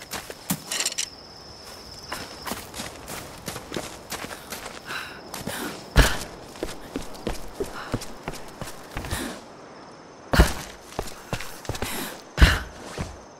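Footsteps crunch over leaves and twigs on forest ground.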